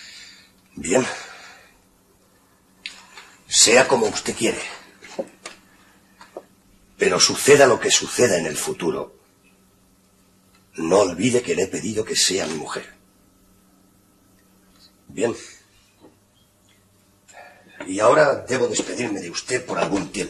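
A man speaks slowly and with emotion, close by, with long pauses.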